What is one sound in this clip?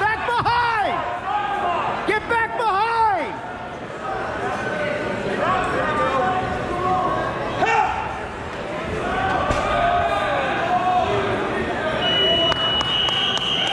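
A crowd of spectators shouts and cheers in a large echoing gym.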